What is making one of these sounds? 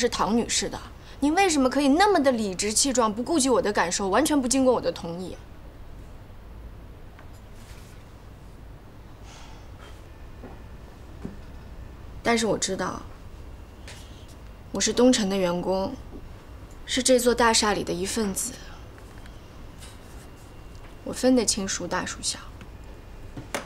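A young woman speaks earnestly and close by.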